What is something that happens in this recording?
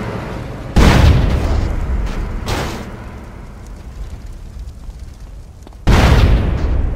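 A car explodes with a loud boom.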